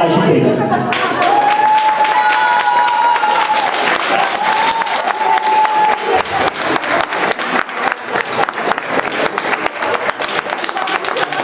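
A crowd applauds in a large room.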